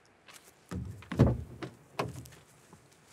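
A car door opens with a click and a thud.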